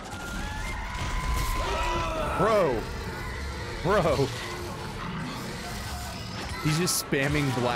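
A creature shrieks and snarls.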